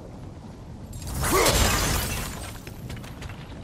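A burst of flame roars and whooshes.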